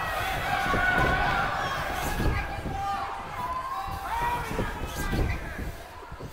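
Heavy thuds land as a wrestler stomps on an opponent on a mat.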